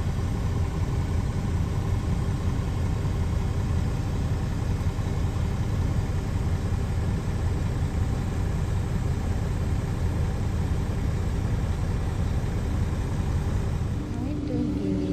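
A car engine rumbles steadily on the road.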